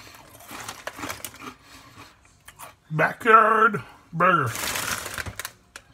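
A chip bag crinkles.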